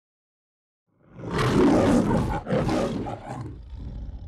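A lion roars loudly twice, then growls as the roar fades.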